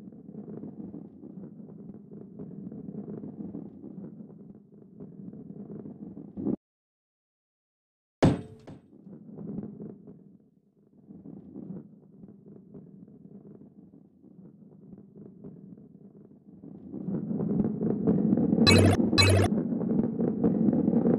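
A heavy ball rolls along a wooden track with a low rumble.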